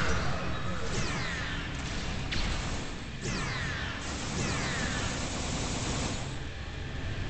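Energy weapons zap and crackle in a fight.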